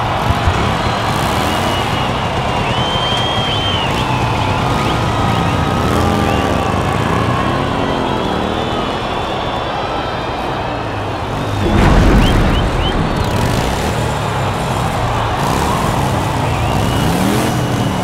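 A large crowd cheers and whistles in a huge echoing arena.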